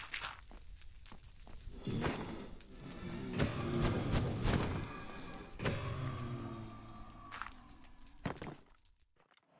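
Fiery creatures crackle and hiss during a fight.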